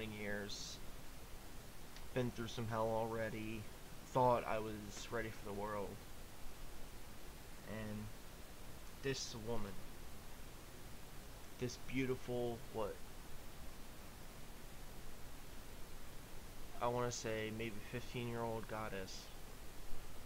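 A young man speaks close into a microphone in short, thoughtful bursts with pauses.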